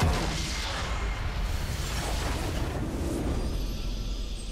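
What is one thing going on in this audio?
Game spell effects crash and boom in a battle.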